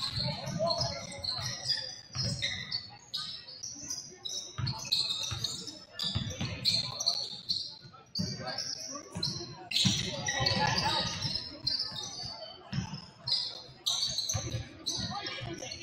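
Sneakers squeak sharply on a hard floor in a large echoing gym.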